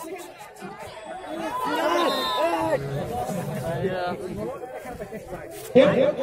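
Boys close by talk and shout excitedly.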